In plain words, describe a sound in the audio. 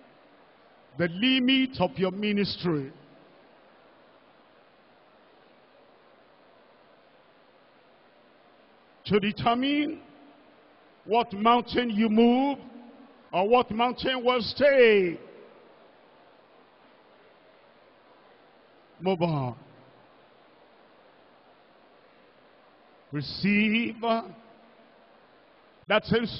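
A man preaches forcefully through a microphone in short bursts with pauses.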